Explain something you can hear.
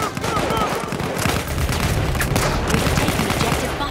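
A submachine gun fires rapid bursts at close range.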